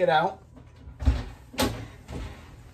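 An oven door opens with a clunk.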